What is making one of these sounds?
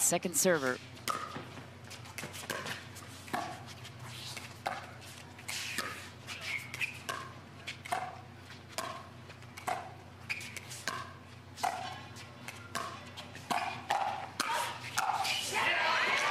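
Paddles strike a plastic ball back and forth in a quick rally.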